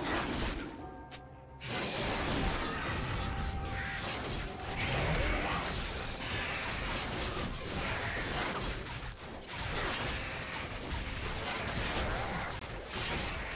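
Magic blasts and weapon hits crackle and thump in a fast game fight.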